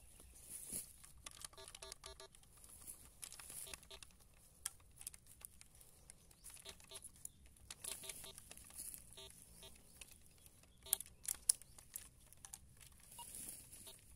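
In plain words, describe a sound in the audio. A metal detector's coil brushes and scrapes over soil and plants.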